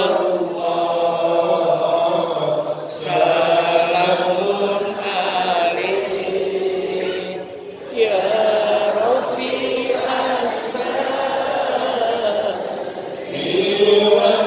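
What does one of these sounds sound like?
A man preaches with animation through a microphone and loudspeakers, his voice echoing in a large hall.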